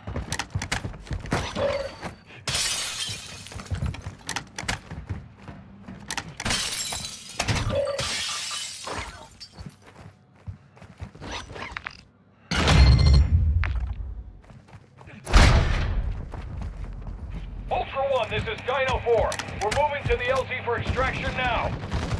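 Footsteps thud and shuffle on a hard floor.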